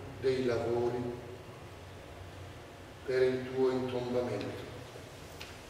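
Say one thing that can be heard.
A man speaks loudly in a large echoing hall.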